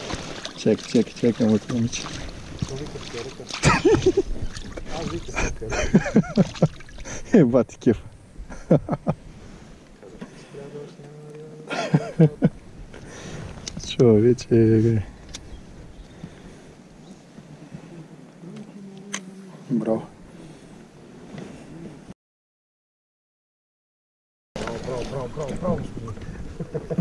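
A fish splashes in shallow water.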